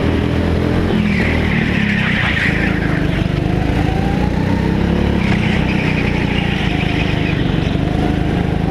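Tyres squeal on a smooth floor through the turns.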